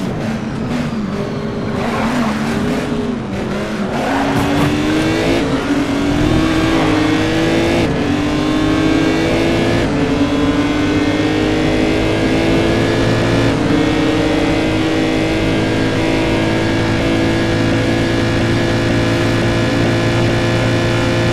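A racing car engine roars and revs up through the gears as it speeds along.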